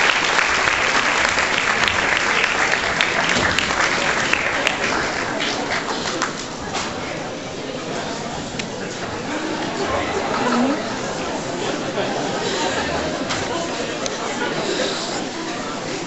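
A large choir of young women sings together in an echoing hall.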